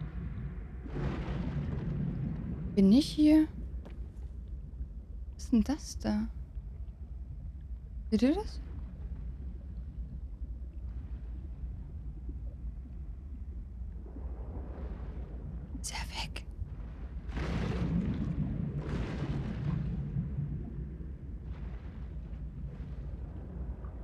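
A young woman talks quietly into a close microphone.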